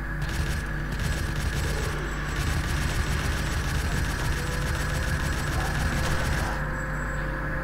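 A heavy gun fires in a rapid, steady stream of shots.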